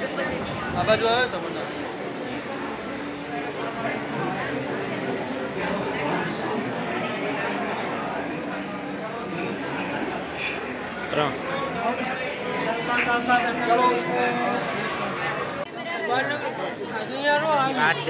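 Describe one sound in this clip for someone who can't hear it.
A crowd of people chatters and cheers nearby.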